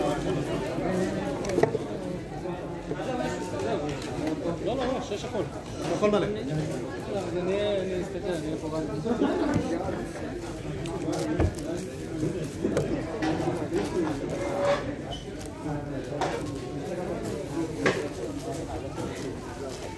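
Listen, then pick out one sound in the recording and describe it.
Plastic puzzle cube pieces click and clatter as they are turned quickly.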